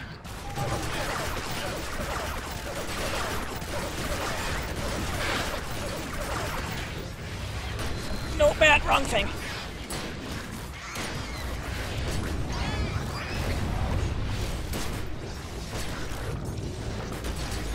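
Magic blasts crackle and zap.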